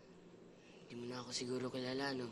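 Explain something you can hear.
A boy talks with a smile.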